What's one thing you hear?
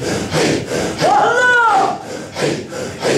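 A man cries out a long wavering call.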